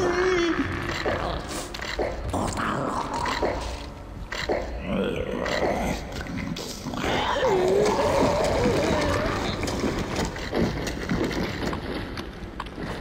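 A creature shrieks and snarls close by.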